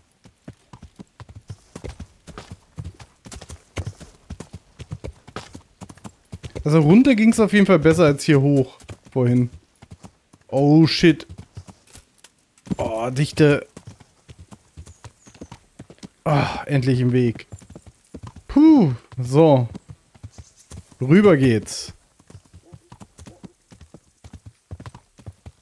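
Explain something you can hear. Horse hooves thud steadily on the ground.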